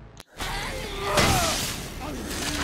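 A heavy hammer smashes into a body with a loud thud.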